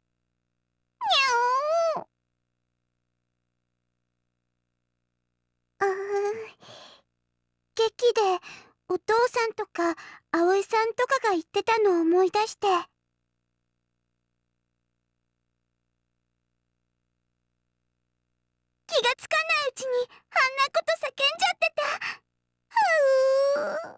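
A young woman speaks with animation in a high voice, with pauses between lines.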